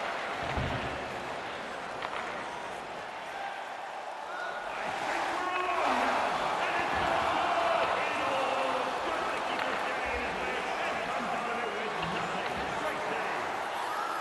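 Skates scrape and hiss on ice.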